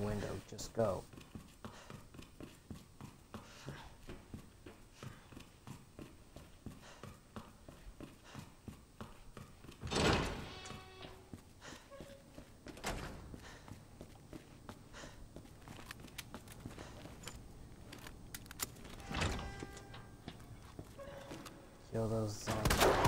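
Quick footsteps tap on a hard floor.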